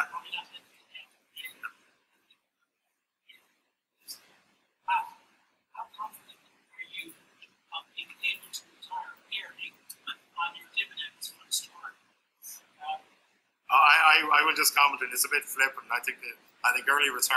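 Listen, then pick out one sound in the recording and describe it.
A man talks through an online call, in short bursts with pauses.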